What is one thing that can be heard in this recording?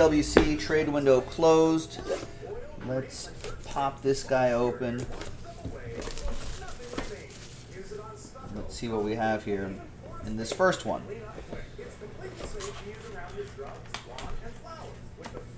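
Cardboard boxes scrape and tap against a table.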